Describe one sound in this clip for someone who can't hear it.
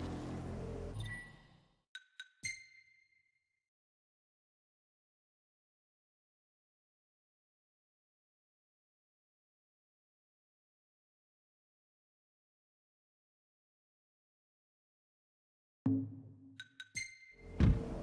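Menu selections click with short beeps.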